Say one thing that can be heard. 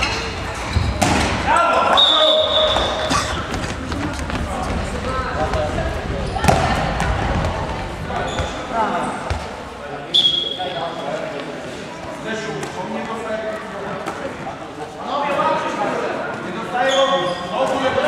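A ball thumps against the floor and hands.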